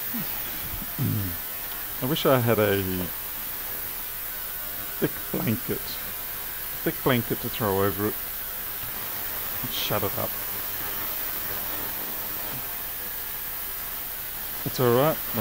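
A man talks calmly into a close microphone, in short phrases with pauses.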